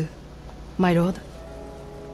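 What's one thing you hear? A young woman speaks calmly and briefly.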